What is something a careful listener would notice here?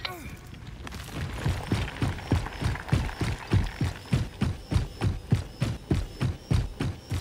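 Heavy footsteps thud steadily on the ground.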